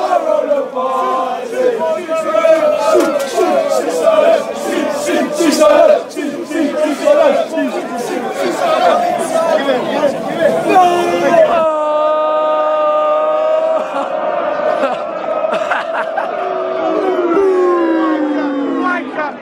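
A crowd of young men chants and sings loudly and close by.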